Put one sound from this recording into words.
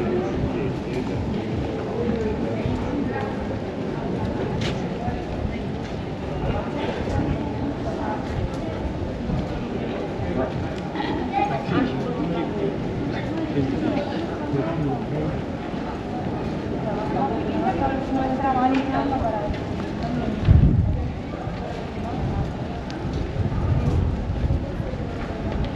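Many people talk and murmur all around in a busy street.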